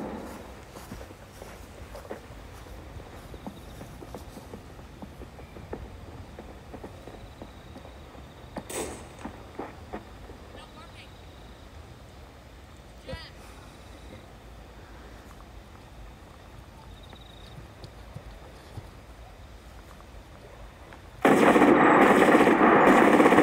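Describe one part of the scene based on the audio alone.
Leaves and dry grass rustle close by as a soldier crawls.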